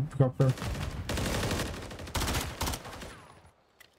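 Gunfire bursts rapidly in a video game.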